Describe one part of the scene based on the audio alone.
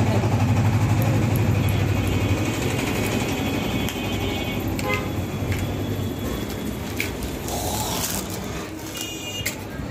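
Plastic packaging crinkles and tears.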